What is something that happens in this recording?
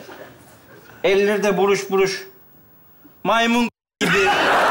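A man speaks on stage with animated, comic tones.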